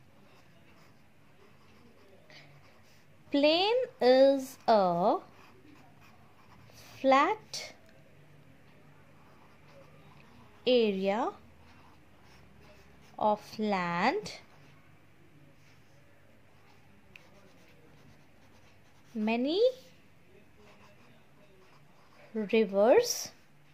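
A ballpoint pen scratches on paper as it writes.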